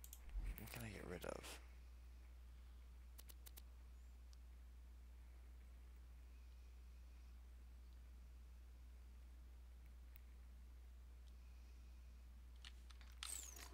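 Soft clicks sound as menu items change.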